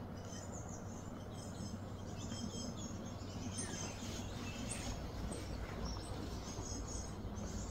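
Grass rustles as a gorilla moves through it.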